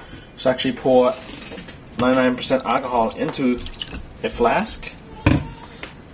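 Liquid pours from a bottle into a glass dish.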